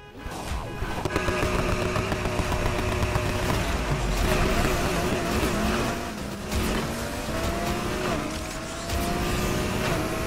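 Several car engines roar and rev loudly.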